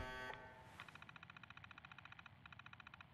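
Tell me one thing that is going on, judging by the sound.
An old computer terminal hums and buzzes as it starts up.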